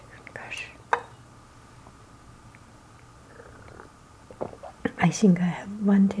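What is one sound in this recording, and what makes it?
A small glass clinks against a ceramic plate.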